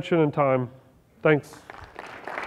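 A man speaks through a microphone in a large hall.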